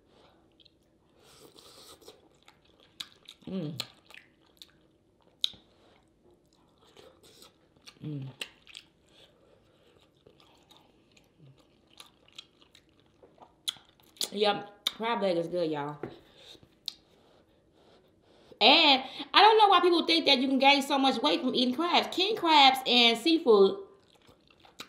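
A woman chews and smacks her lips close by.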